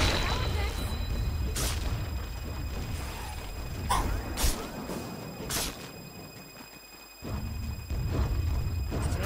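Weapons clash and thud in a busy fight.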